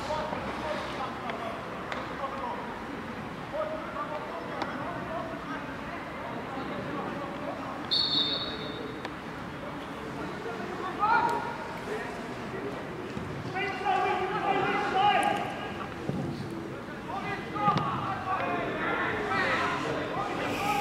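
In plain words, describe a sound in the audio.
Men shout to each other across an open pitch, heard from a distance.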